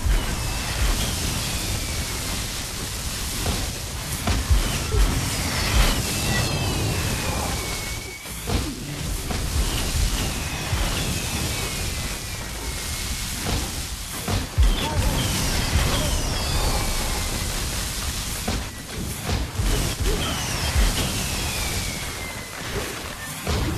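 Magic spell effects crackle and whoosh in fast succession.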